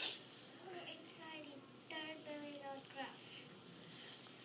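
A young child speaks in a high voice nearby.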